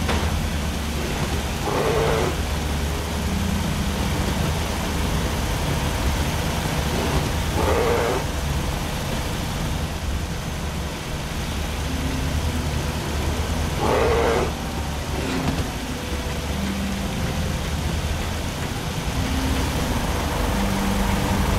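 Footsteps tap on a metal grate.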